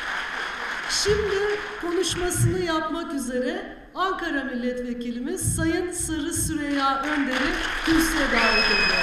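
A man speaks over a loudspeaker in a large hall.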